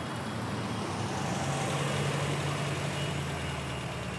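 A van drives slowly along a road.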